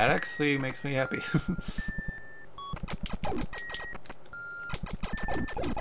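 Short electronic beeps ring out as a retro game character fires shots.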